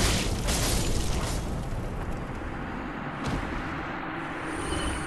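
Heavy armoured footsteps clank on stone.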